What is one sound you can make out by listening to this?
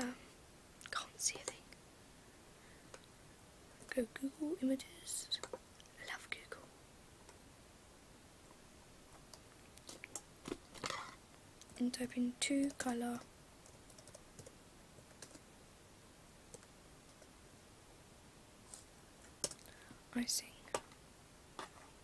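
A young woman speaks softly, close to the microphone, in short bursts with pauses.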